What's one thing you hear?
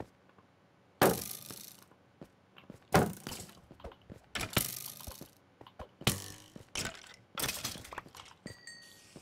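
A sword strikes a skeleton with sharp hits.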